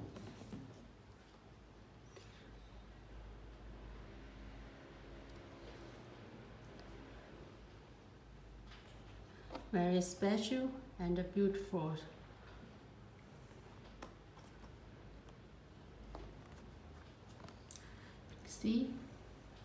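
Hands turn a leather shoe over with soft rubbing and tapping.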